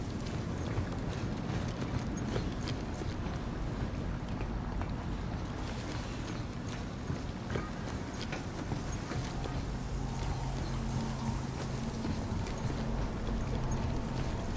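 Heavy footsteps clank on a metal walkway.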